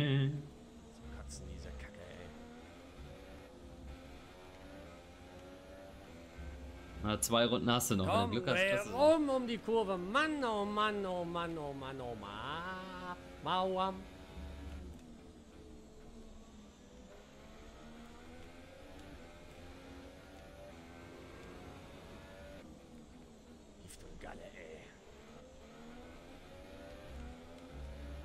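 A racing car engine whines and revs up and down as gears shift.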